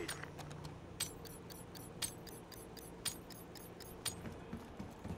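Game countdown ticks sound at an even pace.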